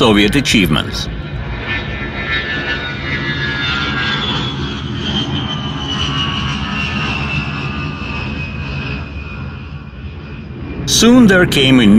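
Jet engines roar as aircraft fly past, with a whine that slowly drops in pitch.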